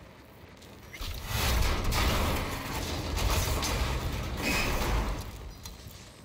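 A figure climbs, grabbing and pulling up onto a ledge with a heavy scraping rush.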